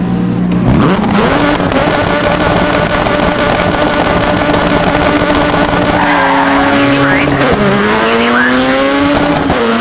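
A rally car engine revs hard and climbs through the gears.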